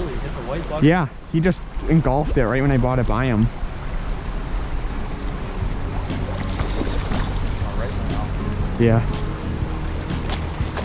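A stream flows and gurgles gently over rocks.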